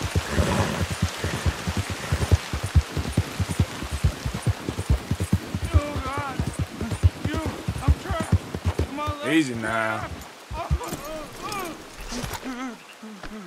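Horse hooves thud rapidly on a dirt trail.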